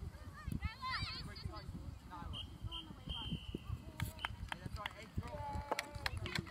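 Young girls call and shout to each other across an open field.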